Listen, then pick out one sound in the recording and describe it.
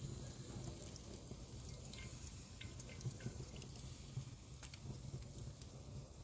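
A metal ladle clinks against a pan.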